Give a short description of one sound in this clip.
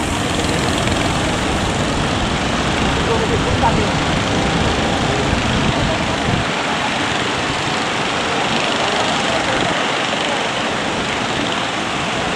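A boat engine rumbles as it pushes through the surf.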